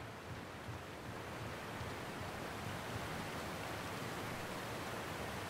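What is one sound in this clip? Water rushes and churns nearby.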